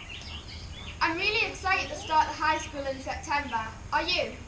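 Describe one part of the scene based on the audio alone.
A young girl speaks with animation, close by.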